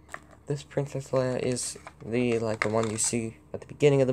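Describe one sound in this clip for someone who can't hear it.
A plastic toy figure clicks and rattles as a hand pulls it from a case.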